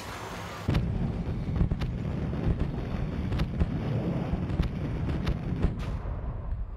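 Fireworks pop and crackle in quick bursts.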